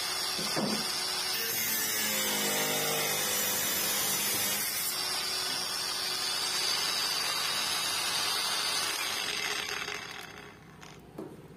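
An angle grinder whines loudly and steadily, then winds down.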